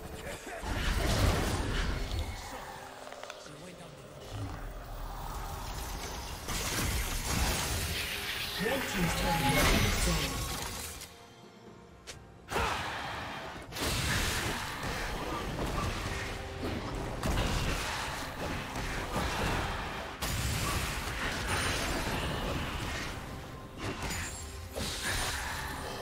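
Video game spells whoosh and crackle as figures fight.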